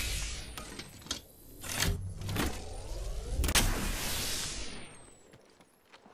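A shield cell charges with a rising electric whir.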